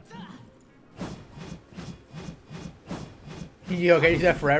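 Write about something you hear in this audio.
A sword swishes through the air in quick strokes.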